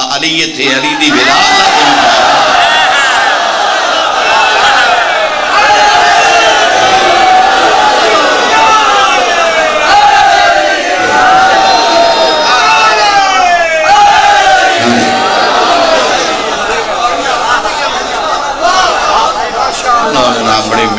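A large crowd of men chants loudly in a big echoing hall.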